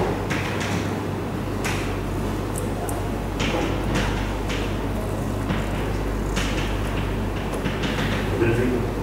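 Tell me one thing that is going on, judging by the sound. Chalk taps and scratches on a chalkboard.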